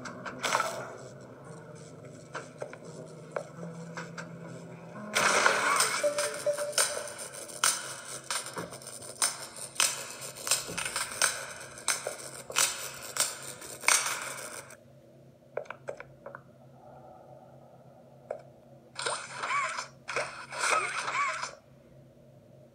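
Electronic game sound effects play from a small tablet speaker.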